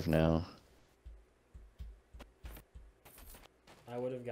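Footsteps thud on dry ground at an even pace.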